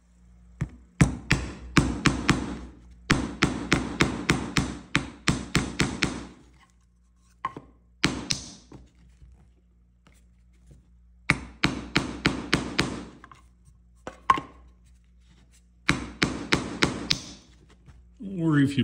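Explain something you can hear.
A hammer taps a nail into wood in quick bursts of sharp knocks.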